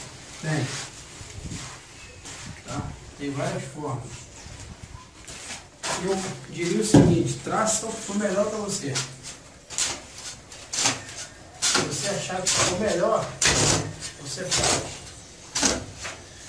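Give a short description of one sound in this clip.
A shovel scrapes and scoops sand and cement on a hard floor.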